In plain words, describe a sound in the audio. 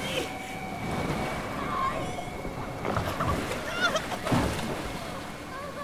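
Water splashes against a small boat.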